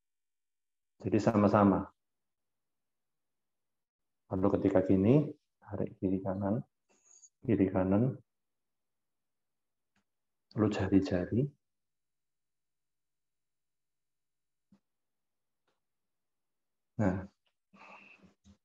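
A young man speaks calmly in short phrases over an online call.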